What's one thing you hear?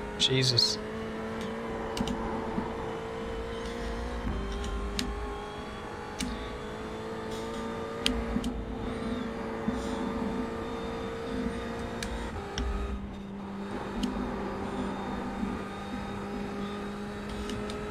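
A racing car engine drones steadily at high revs, dropping in pitch with each gear change.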